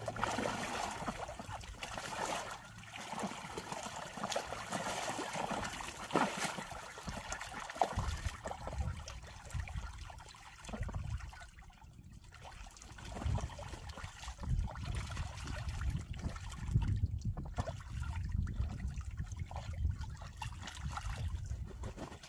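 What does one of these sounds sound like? Ducks quack softly.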